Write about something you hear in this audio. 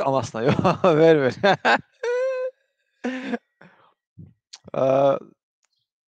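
A man laughs on an online call.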